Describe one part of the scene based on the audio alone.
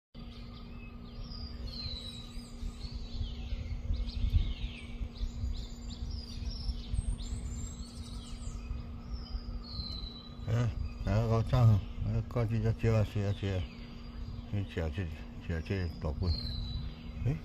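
A bird chirps close by.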